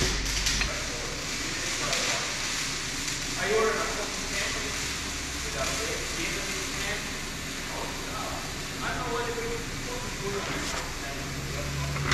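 Metal tools clink and scrape against metal.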